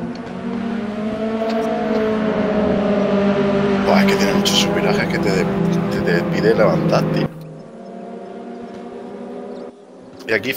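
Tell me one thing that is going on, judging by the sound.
Racing car engines drone and whine steadily at high revs.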